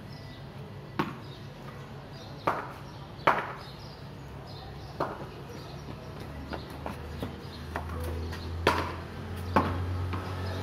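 A cricket bat strikes a ball with sharp wooden knocks.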